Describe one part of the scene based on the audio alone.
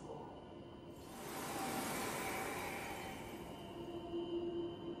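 A soft magical shimmer swells and fades away.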